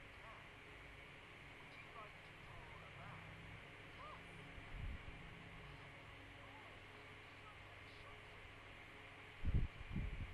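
A young boy speaks faintly over an online call.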